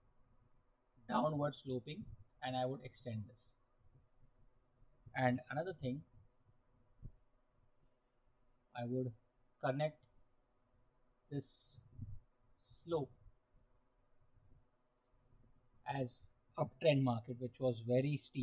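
A man speaks calmly and explains into a close microphone, with pauses.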